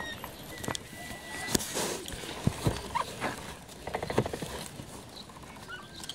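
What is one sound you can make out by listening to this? Fur rustles and bumps right against the microphone as a capybara sniffs close by.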